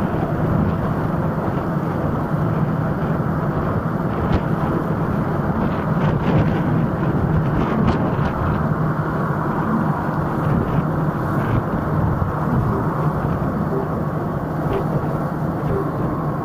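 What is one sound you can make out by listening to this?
Wind rushes loudly past a moving scooter.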